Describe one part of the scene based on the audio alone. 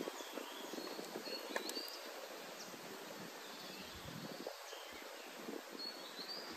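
A stream trickles gently outdoors.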